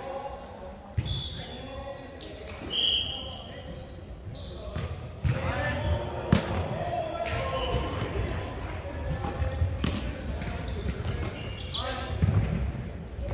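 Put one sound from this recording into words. A volleyball is struck with sharp slaps that echo in a large hall.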